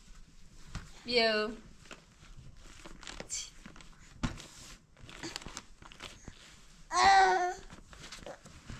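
A young child babbles and squeals.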